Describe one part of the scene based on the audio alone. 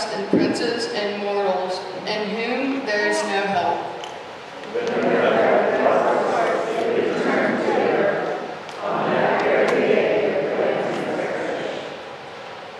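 A boy reads aloud into a microphone in an echoing hall.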